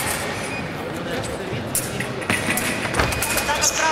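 Sabre fencers' shoes tap and squeak on a fencing strip.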